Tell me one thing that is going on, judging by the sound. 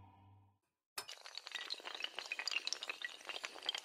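Dominoes topple and clatter against each other in rapid clicks.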